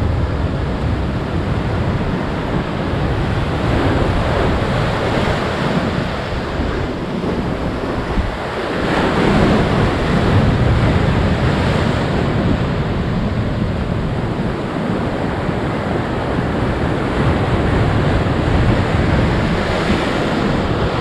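Waves crash and wash over rocks along the shore.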